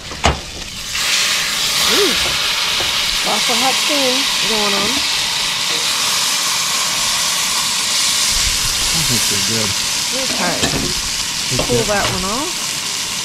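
A steak sizzles loudly in a hot pan.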